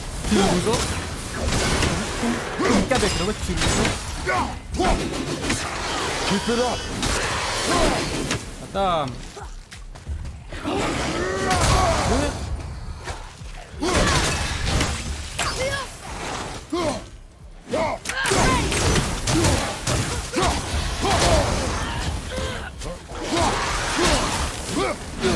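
Axe blows strike and clang in a fight.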